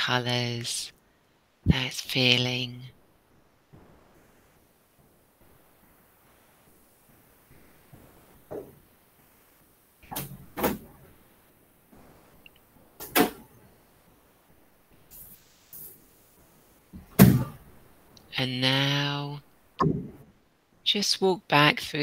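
A woman speaks calmly through a headset microphone on an online call.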